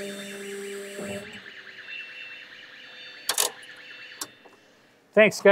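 A forklift's warning beeper sounds in quick repeated tones.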